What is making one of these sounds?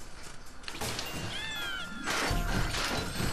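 Coins chime as a game character collects them.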